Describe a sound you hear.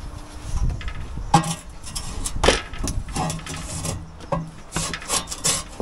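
Metal sheeting rattles and clanks as it is handled.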